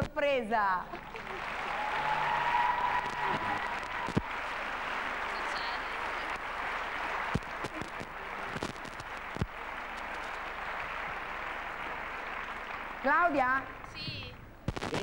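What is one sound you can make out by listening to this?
A crowd cheers and applauds noisily nearby.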